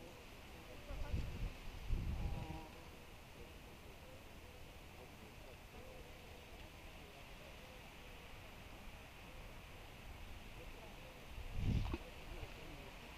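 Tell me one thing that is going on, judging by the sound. Wind gusts outdoors briefly rumble against the microphone.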